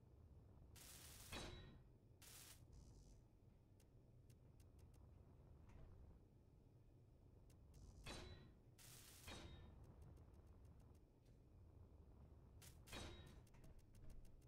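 A welding tool hisses in short bursts.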